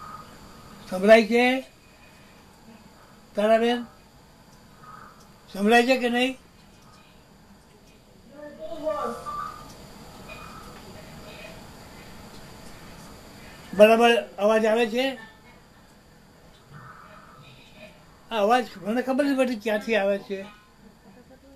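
An elderly man speaks loudly and with animation close by, in short bursts.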